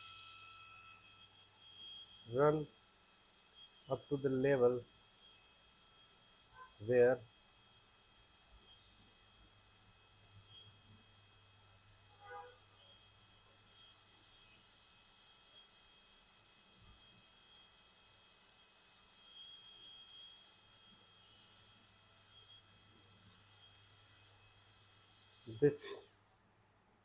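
A dental drill whines steadily and thinly.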